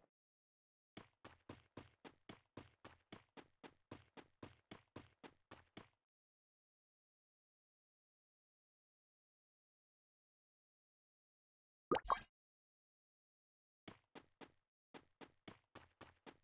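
Footsteps run quickly over ground.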